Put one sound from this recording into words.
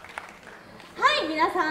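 A young girl speaks brightly into a microphone over a loudspeaker.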